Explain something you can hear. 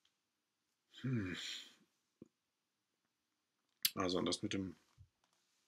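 A man speaks calmly and close into a microphone, in short bursts.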